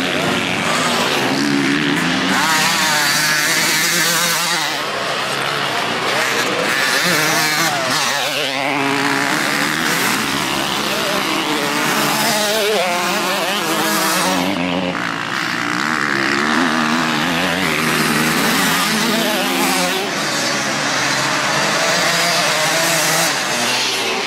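Motocross bike engines roar close by, revving up and down again and again.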